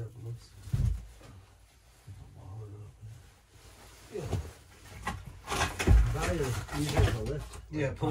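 Wooden boards knock and scrape on a floor.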